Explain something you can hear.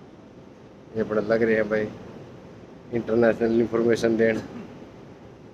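A man speaks close up, in a lively way.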